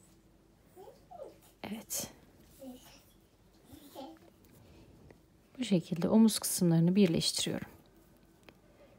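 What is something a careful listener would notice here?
Crocheted fabric rustles softly as hands handle it.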